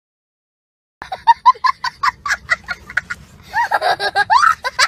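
A young boy laughs loudly and giggles in bursts.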